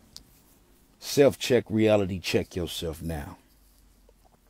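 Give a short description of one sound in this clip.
A young man speaks briefly and close up, in a low voice.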